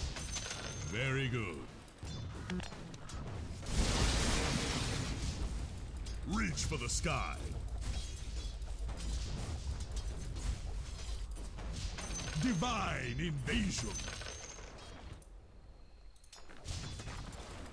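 Magic spells crackle and whoosh in a battle.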